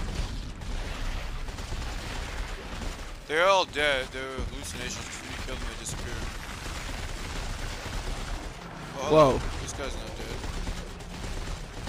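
A weapon fires sharp energy shots in bursts.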